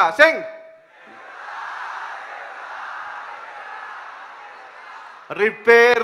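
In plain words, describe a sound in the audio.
A crowd cheers and claps in a large hall.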